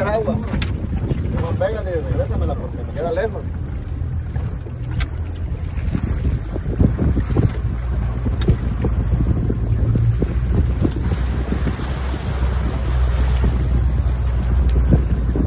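Waves splash against a small boat.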